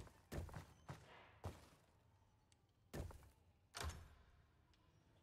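Stone tiles clunk and slide into place.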